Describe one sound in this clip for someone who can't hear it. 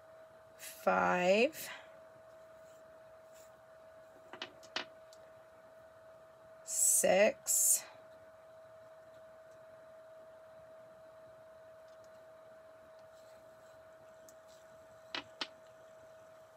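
Wooden beads click together as they are threaded onto a cord.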